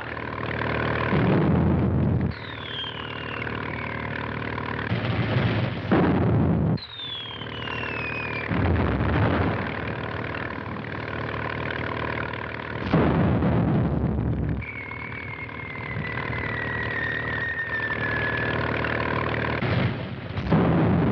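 A deck gun fires with loud, heavy booms.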